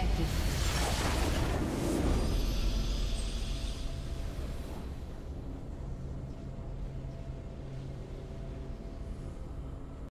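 A triumphant fanfare plays and slowly fades.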